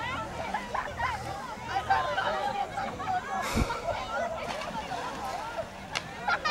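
Many children and adults chatter and call out outdoors.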